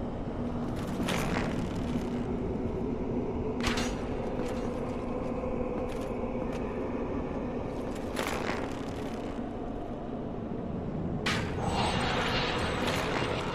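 Arrows whoosh and thud into stone, again and again.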